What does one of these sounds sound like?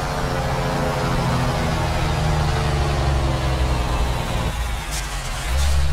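A truck's diesel engine rumbles steadily and shifts in pitch.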